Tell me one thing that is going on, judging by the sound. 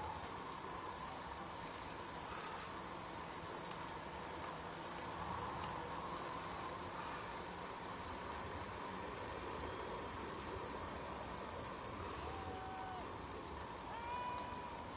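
Bicycle wheels whir steadily on a paved road.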